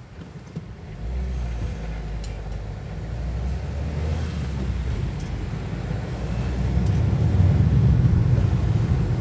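A car engine hums from inside as the car pulls away and speeds up.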